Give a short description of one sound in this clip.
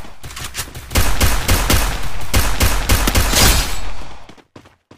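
A pistol fires a rapid series of shots.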